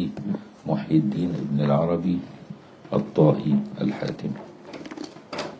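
An elderly man speaks calmly and closely into a microphone.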